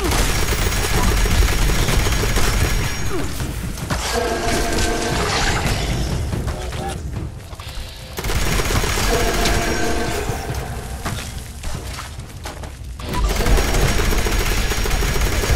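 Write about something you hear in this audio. A heavy machine gun fires in rapid, roaring bursts.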